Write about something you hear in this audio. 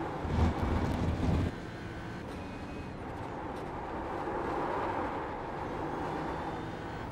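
A race car engine roars steadily, shifting gears through a corner.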